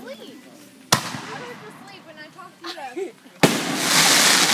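Fireworks burst with sharp loud bangs.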